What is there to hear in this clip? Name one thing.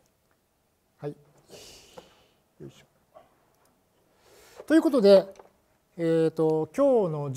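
An elderly man speaks calmly into a microphone in a large room.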